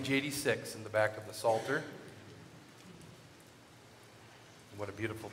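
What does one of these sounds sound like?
A man speaks calmly through a microphone, pausing between phrases.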